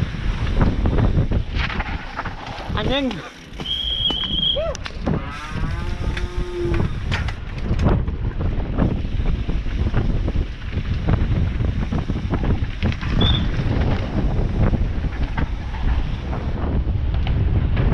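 Downhill mountain bike tyres rattle and thump over dirt and concrete steps.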